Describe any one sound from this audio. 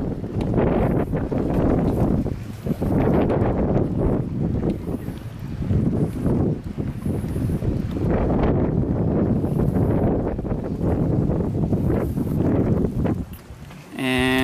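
Wind blows in strong gusts outdoors.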